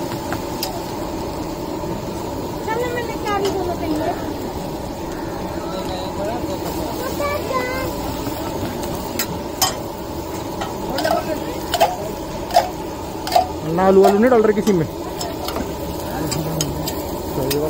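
Batter sizzles on a hot griddle.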